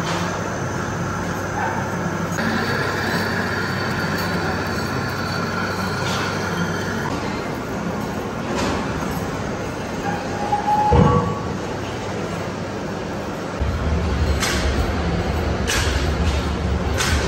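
A lathe hums steadily as it turns.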